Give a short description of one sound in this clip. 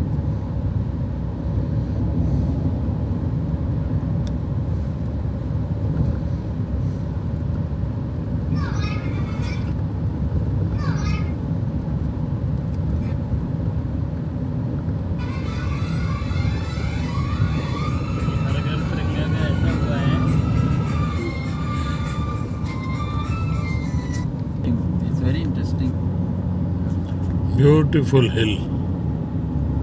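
A vehicle's engine rumbles steadily, heard from inside.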